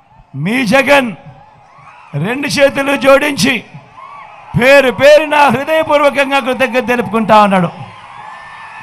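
A man speaks loudly into a microphone through loudspeakers, with strong echo.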